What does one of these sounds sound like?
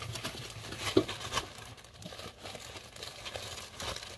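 Paper rustles and crinkles as it is handled close by.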